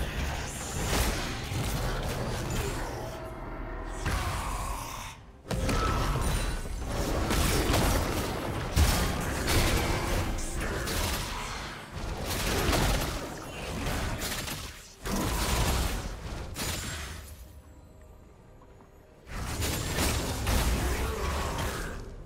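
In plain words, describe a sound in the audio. Game spells and weapons clash and burst in a busy battle.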